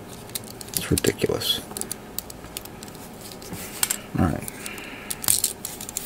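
Small plastic model kit parts click and snap together in hands.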